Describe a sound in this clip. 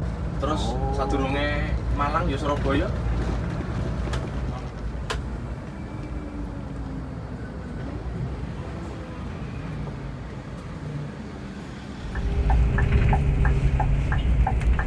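A large bus engine rumbles steadily from inside the cab.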